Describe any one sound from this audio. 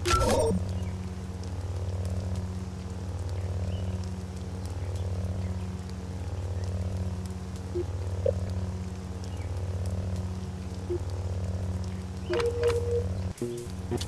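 Low droning game music hums steadily.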